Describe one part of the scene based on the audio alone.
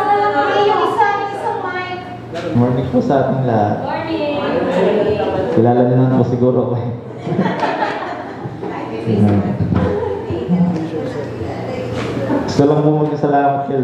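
A young man speaks with animation through a microphone and loudspeakers.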